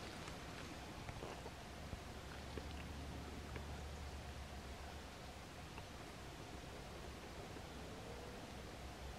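A moth's wings flutter and rustle against dry grass.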